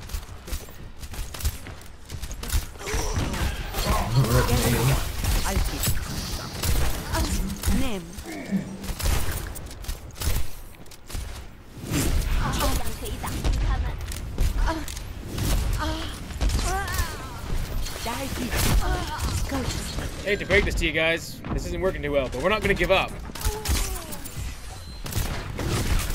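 Rapid gunfire and blasts crackle from a game.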